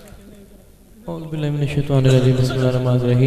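A man sings loudly through a microphone, heard over loudspeakers.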